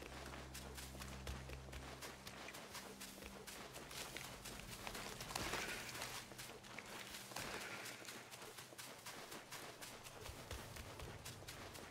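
Footsteps crunch and rustle through dry undergrowth.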